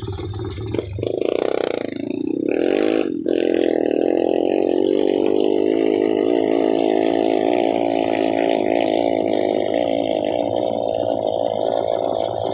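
A motorcycle engine revs up and pulls away.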